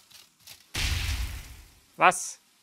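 A firework bursts with a loud crackling blast.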